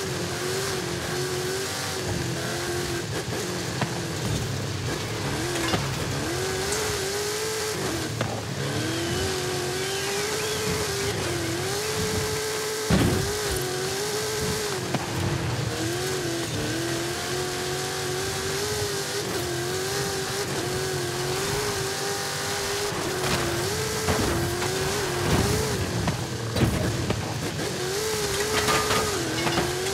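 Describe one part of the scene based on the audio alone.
Tyres crunch and skid over loose sand and gravel.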